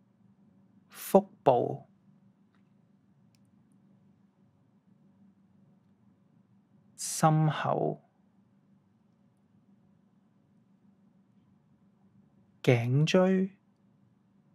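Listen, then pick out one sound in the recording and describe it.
A man speaks calmly in short phrases in a quiet, slightly echoing room.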